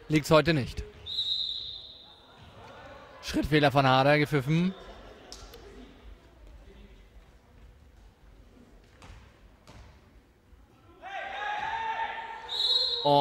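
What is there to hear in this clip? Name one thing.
A referee blows a sharp whistle in a large echoing hall.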